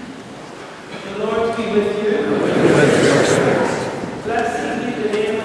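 A choir sings loudly in a large echoing hall.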